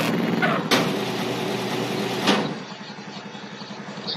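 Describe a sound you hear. A garage door rattles shut.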